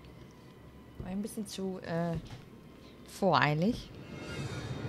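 A young woman speaks close to a microphone with expressive, sing-song pitch.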